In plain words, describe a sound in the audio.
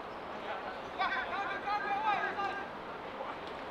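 A young woman shouts at a distance outdoors.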